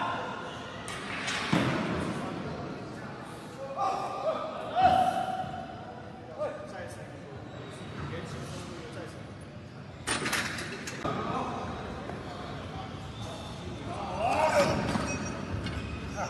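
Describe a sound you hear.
Heavy weight plates clank and thud on a barbell in an echoing hall.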